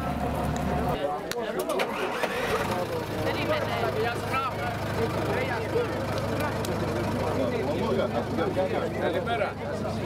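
A crowd of young people and adults chatter outdoors.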